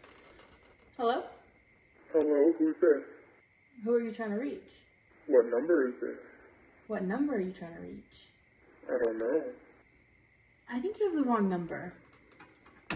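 A young woman talks on the phone in a calm, chatty way.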